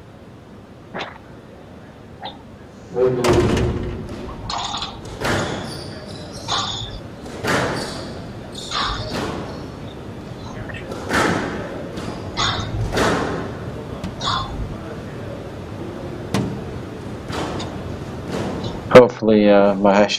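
A squash ball cracks off rackets and the walls in an echoing hall.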